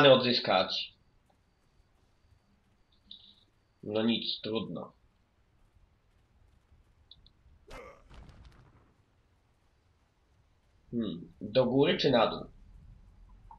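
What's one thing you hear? A young man talks casually into a close microphone.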